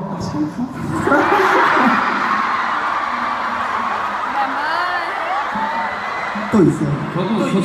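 A large crowd screams and cheers.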